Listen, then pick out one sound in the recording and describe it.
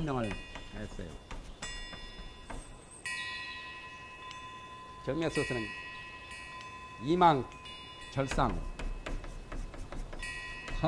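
A man speaks in a calm lecturing voice.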